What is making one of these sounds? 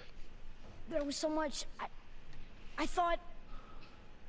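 A young boy speaks in a clear, higher voice nearby.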